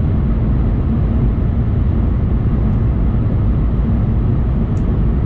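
A low, steady rumble fills a moving vehicle's cabin.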